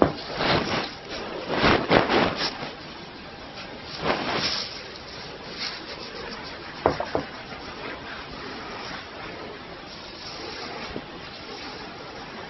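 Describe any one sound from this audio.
Fingers rub and scratch through hair close to a microphone.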